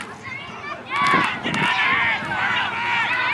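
Spectators cheer loudly as a runner breaks away.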